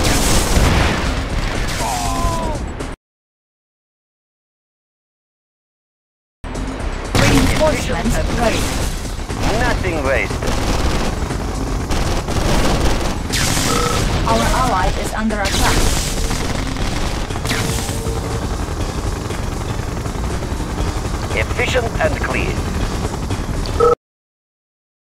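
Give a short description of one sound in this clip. Explosions boom and crackle in a battle.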